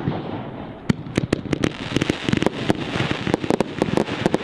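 Fireworks crackle rapidly.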